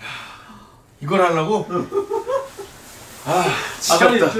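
A young man speaks excitedly and laughs close by.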